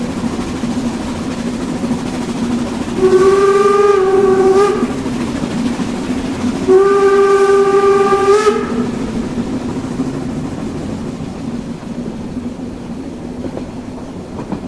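A steam locomotive hisses and rumbles steadily while standing.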